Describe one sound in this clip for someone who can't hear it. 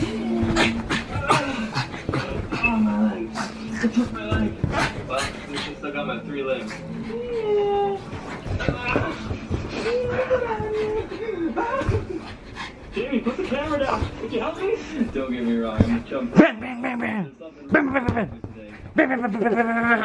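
A small dog's paws scuffle on a bed cover.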